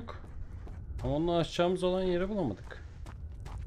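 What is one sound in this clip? A young man speaks loudly and with animation into a close microphone.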